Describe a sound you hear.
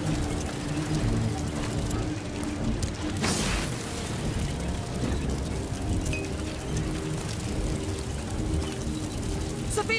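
A campfire crackles nearby.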